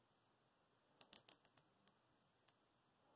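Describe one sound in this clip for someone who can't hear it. Small metal parts click and tap softly.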